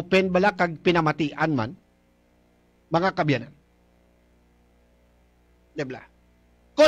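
A middle-aged man speaks with animation into a close microphone, in short bursts with pauses.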